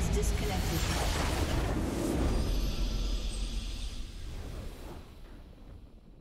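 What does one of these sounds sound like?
A triumphant game fanfare swells and slowly fades.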